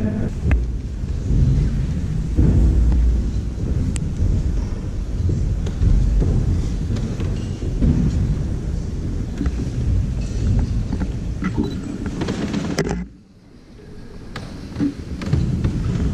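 Footsteps shuffle across a stone floor.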